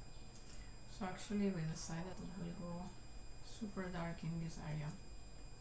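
A young woman talks calmly into a nearby microphone.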